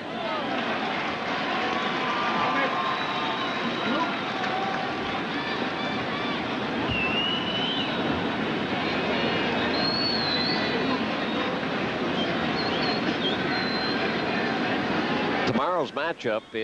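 A large crowd murmurs and cheers in a big open stadium.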